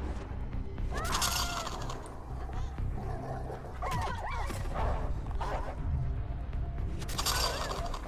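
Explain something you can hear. A wolf whines and yelps close by.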